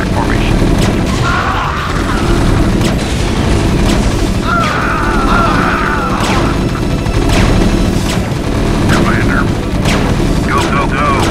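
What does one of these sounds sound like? Gunfire and explosions crackle and boom in a video game battle.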